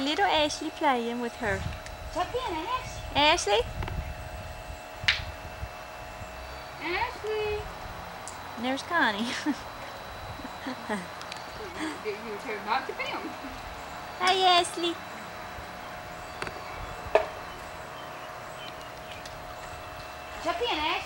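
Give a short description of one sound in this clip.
A young child babbles and chatters nearby.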